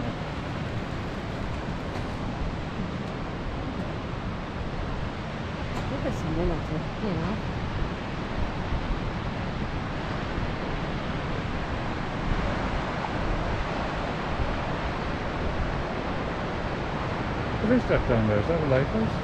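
Wind blusters loudly outdoors.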